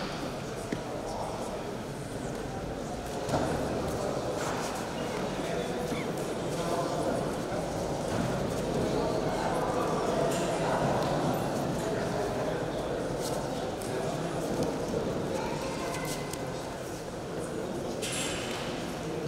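Bare feet shuffle and slap on a mat.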